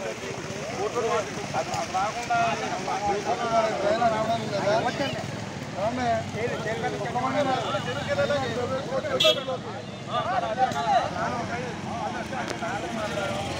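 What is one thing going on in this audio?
A crowd of men shouts and chants together outdoors.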